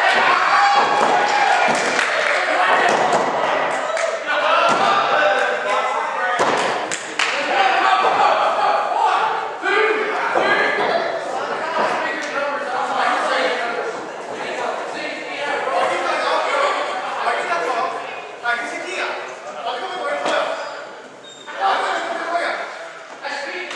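A seated crowd of men and women shouts and cheers in an echoing hall.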